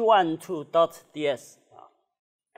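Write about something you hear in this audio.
A man speaks clearly, as if lecturing.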